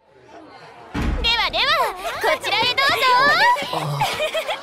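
A young woman calls out excitedly and playfully.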